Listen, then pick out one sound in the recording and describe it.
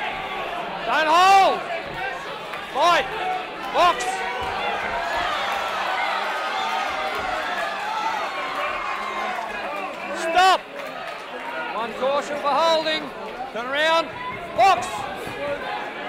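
Men in the crowd shout loudly at the boxers.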